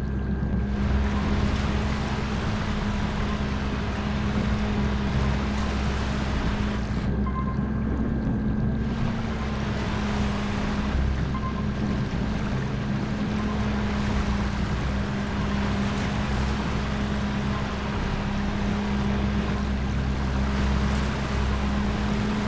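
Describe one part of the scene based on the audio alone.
Water splashes and churns as a submarine breaks through waves.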